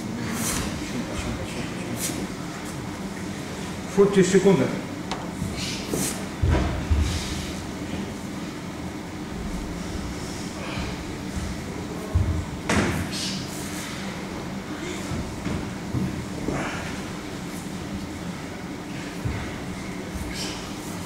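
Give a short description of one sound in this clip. Feet and hands thud softly on a padded floor during exercises.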